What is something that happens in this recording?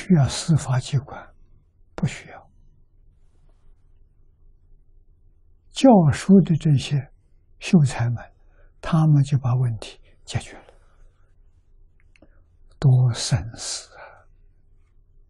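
An elderly man speaks calmly and with animation, close to a microphone, with short pauses.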